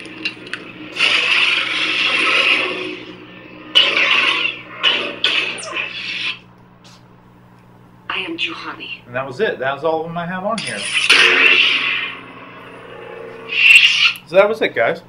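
A toy light sword whooshes in bursts as it is swung.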